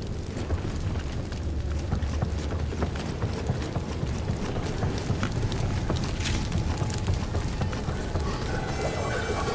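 Quick footsteps patter on a wooden floor.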